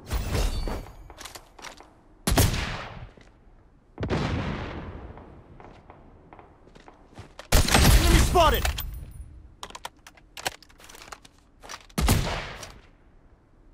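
Sniper rifle shots boom and echo across open ground.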